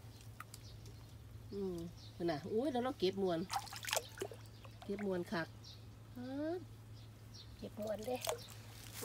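Hands splash and swish through shallow water.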